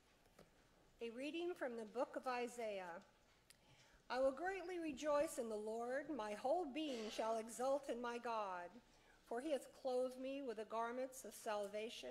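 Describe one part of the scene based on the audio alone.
A middle-aged woman reads out calmly through a microphone in a large, echoing room.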